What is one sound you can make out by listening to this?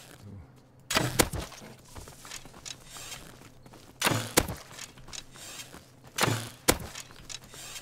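A bowstring snaps as an arrow is shot, again and again.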